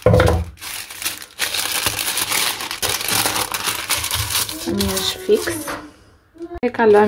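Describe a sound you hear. Baking paper crinkles and rustles.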